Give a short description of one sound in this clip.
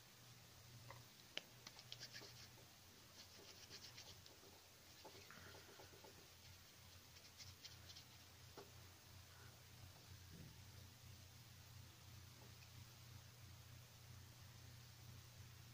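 Wire and clay click and rustle softly as they are handled.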